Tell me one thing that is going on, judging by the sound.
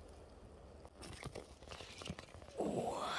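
Moss rustles and tears as a mushroom is pulled from the ground.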